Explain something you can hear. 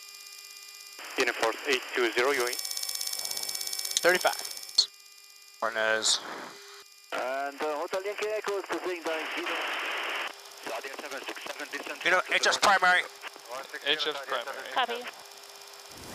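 A man speaks in short bursts over a crackly radio headset.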